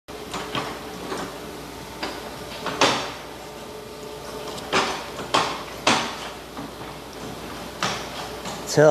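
Metal tools clank and knock against a car's underside.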